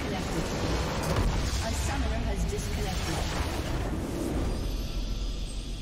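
A huge crystal shatters with a deep booming blast.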